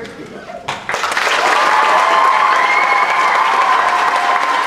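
A crowd of children shout and cheer loudly.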